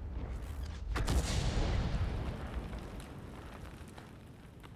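A shell explodes with a loud blast that slowly fades.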